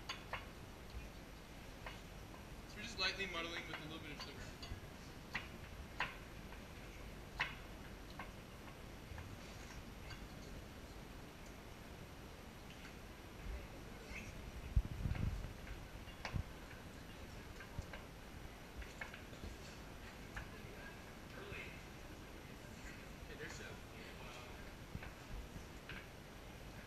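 Glasses and bottles clink sharply now and then.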